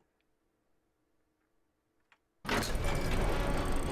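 Heavy wooden gates creak open.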